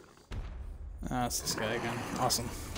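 A monster lets out a deep, growling roar.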